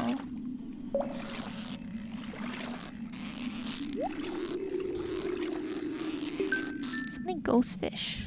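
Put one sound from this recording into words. A fishing reel whirs steadily as a line is wound in.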